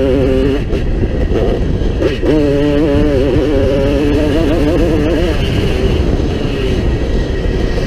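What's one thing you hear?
A dirt bike engine revs hard and shifts pitch up and down close by.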